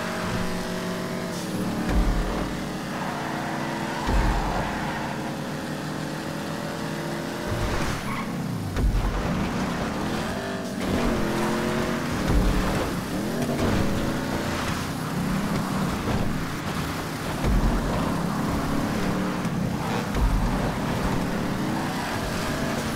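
A car engine revs and whines, its pitch rising and falling with gear changes.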